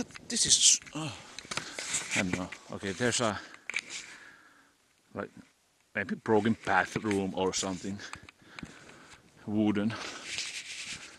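A man talks close by, calmly.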